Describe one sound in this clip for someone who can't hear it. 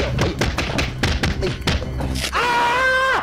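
Thuds and knocks sound as two boys scuffle.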